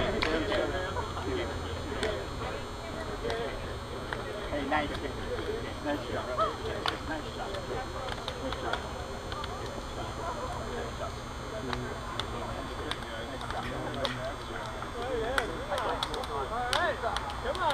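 Hands slap together as players shake hands.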